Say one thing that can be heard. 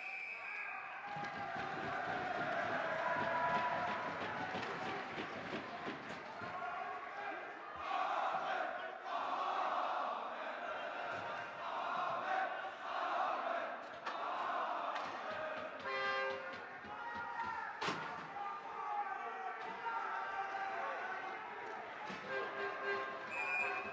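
A crowd of spectators cheers and shouts in an echoing rink.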